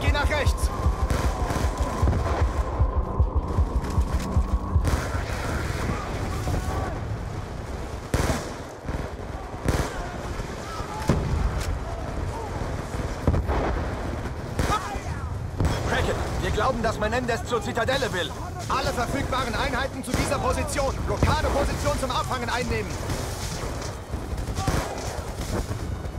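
Rapid bursts of gunfire crack and echo.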